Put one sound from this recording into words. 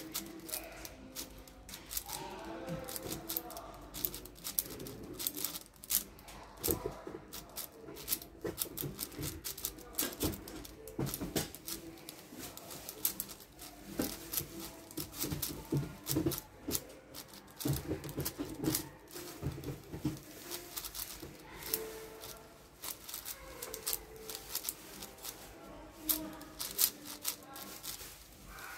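Plastic puzzle cube layers click and clack rapidly as they are turned by hand.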